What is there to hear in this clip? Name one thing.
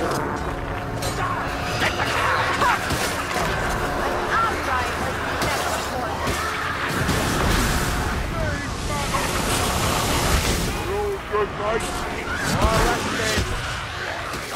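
Blades slash and thud into creatures in quick, repeated blows.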